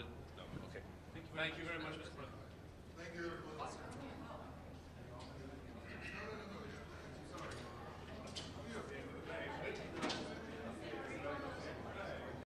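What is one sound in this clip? Men talk casually nearby in a room with some echo.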